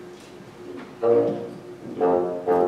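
Several bassoons play a loud chord together, in short bursts.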